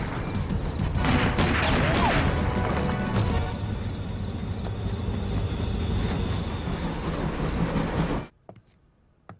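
A freight train rumbles and clatters loudly along the tracks.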